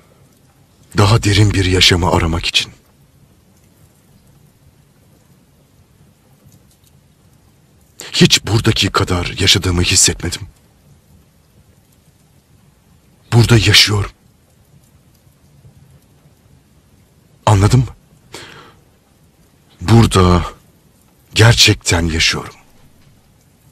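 A man speaks quietly and slowly, close by, with long pauses.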